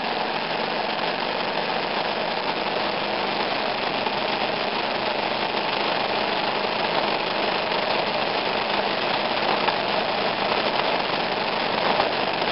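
Strong wind blows steadily and roars outdoors.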